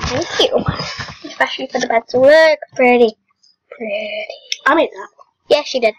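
A second young girl laughs and talks close to a microphone.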